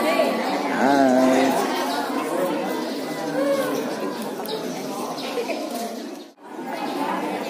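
Many young voices chatter and call out at once in a crowd close by.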